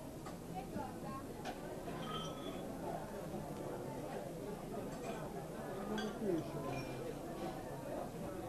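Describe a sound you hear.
Cups and glasses clink at a counter.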